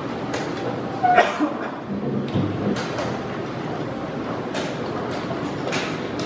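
A chess piece clicks on a board.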